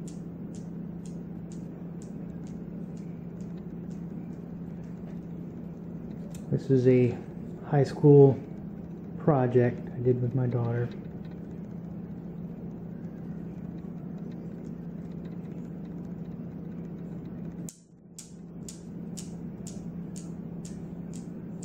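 Steel balls on a desk toy click against each other in a quick, steady rhythm.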